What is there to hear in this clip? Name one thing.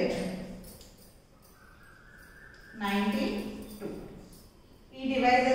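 A woman speaks calmly and clearly, as if teaching.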